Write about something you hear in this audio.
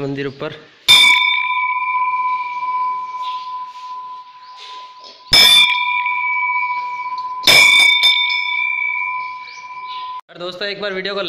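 A large brass temple bell is struck three times and rings on.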